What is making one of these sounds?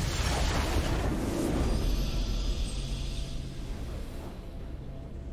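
A triumphant game fanfare bursts out and slowly fades.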